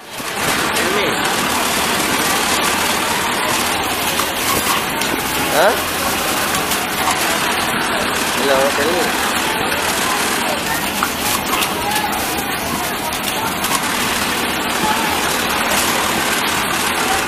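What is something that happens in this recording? Sewing machines whir and clatter steadily in a busy room.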